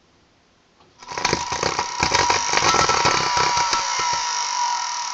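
Sparks crackle and snap inside an electric motor.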